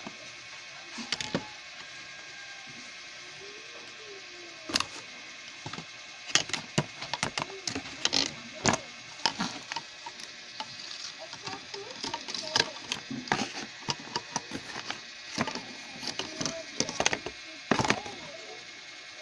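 Plastic fan parts knock and rattle against a cardboard box.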